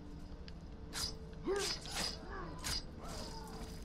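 Sharp blows land in a close fight.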